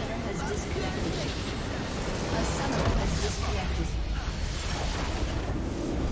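A huge structure explodes with a deep rumbling boom.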